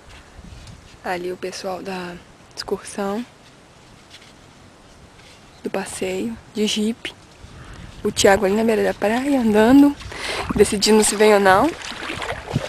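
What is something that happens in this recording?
A young woman calls out loudly outdoors.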